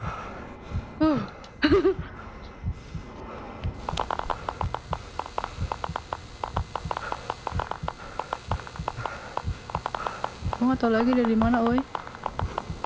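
A young woman speaks and exclaims with animation into a close microphone.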